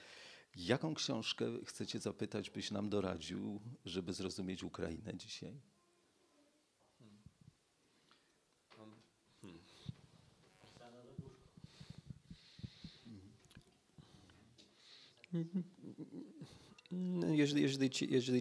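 A middle-aged man speaks calmly into a microphone in a small echoing room.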